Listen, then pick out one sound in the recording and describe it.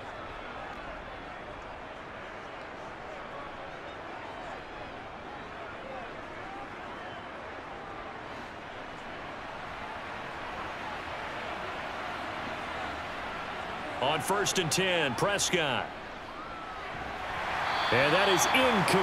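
A large stadium crowd cheers steadily and swells louder toward the end.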